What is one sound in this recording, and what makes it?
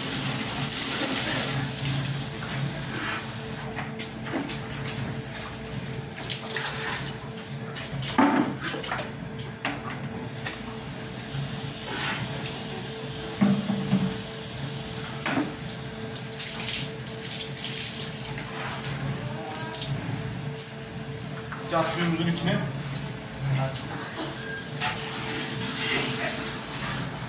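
Water pours from a hose and splashes into a plastic bucket.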